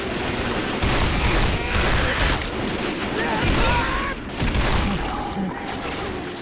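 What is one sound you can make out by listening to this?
A pistol fires several loud shots.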